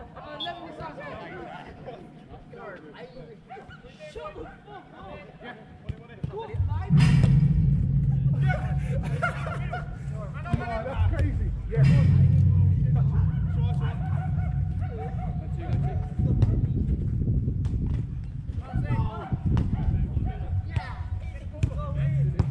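Men shout to each other from across an outdoor pitch.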